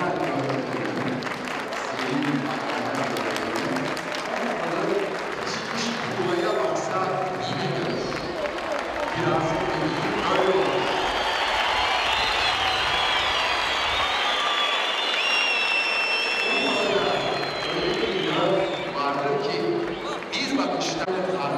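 A large crowd chants and cheers loudly in an echoing stadium.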